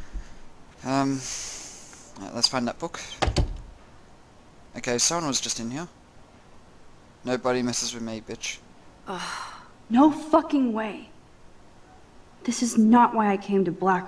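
A young woman speaks to herself in dismay.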